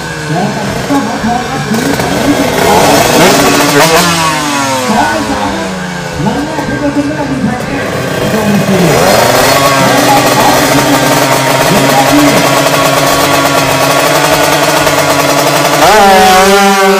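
A racing motorcycle engine revs loudly and repeatedly close by.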